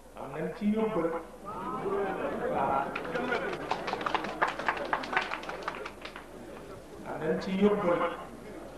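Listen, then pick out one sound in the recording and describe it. A man speaks with emphasis through a microphone and loudspeaker.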